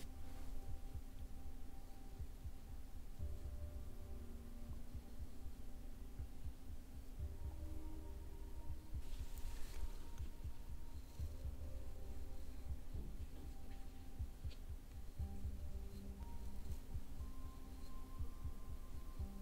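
A soft brush sweeps lightly over skin.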